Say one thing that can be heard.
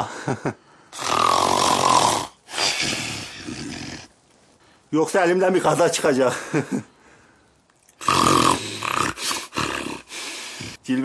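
A man breathes heavily in loud gasps.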